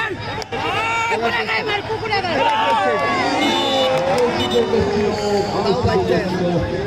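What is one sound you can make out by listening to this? A crowd roars loudly.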